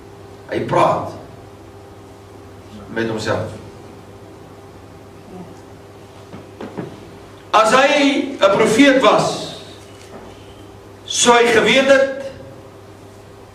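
An elderly man speaks with emphasis through a microphone, in short bursts.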